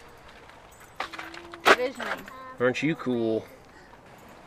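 A woman speaks gently to a child close by.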